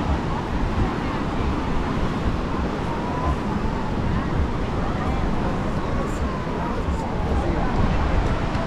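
Wind blows hard across the microphone outdoors.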